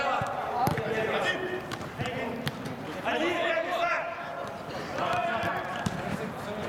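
Men shout and call out to each other in a large echoing hall.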